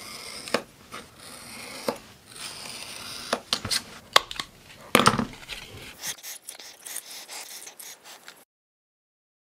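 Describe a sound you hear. A craft knife scrapes and cuts through card.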